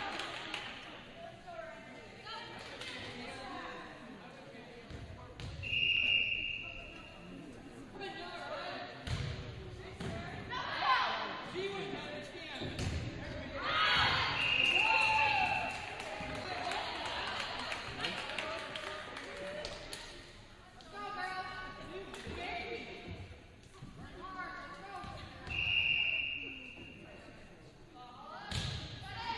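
Young women players call out to each other on the court.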